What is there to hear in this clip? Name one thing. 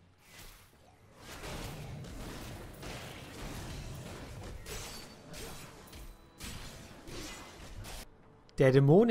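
Blades clash and strike repeatedly in a fight.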